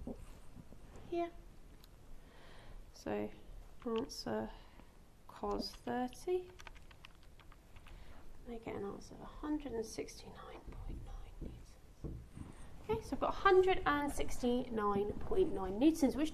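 A young woman speaks calmly, explaining in a small room.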